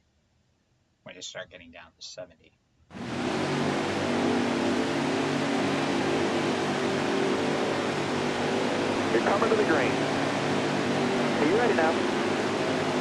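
A man talks into a microphone close by.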